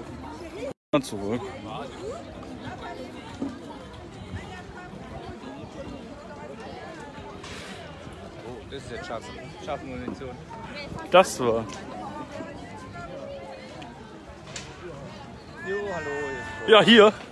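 A crowd chatters outdoors all around.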